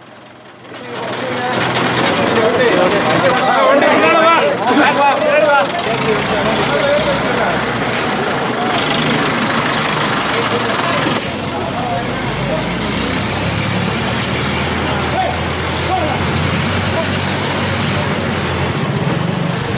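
A crowd of men talk and shout outdoors.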